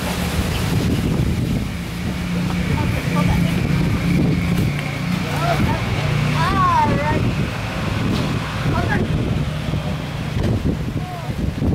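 A young child talks in a high voice nearby.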